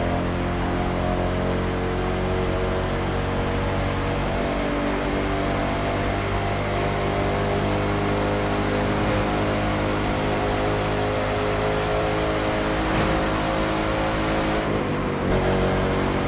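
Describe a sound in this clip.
Tyres hum on smooth tarmac.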